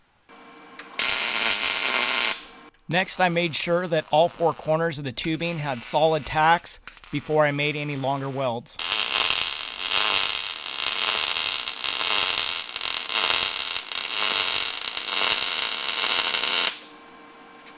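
A welding arc crackles and hisses loudly.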